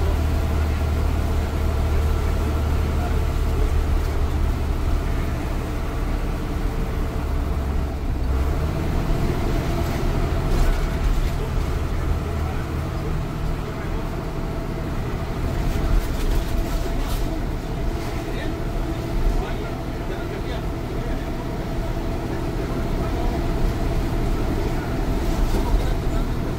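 A bus engine rumbles steadily from inside the cab.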